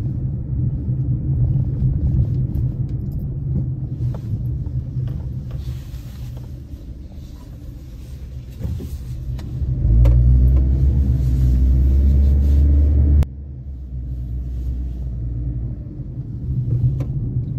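A car drives along a road with a low, steady rumble that swells for a few seconds.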